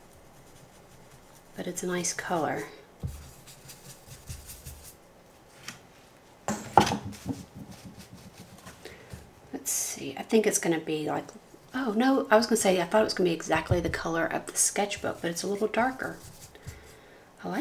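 A paintbrush softly brushes across paper.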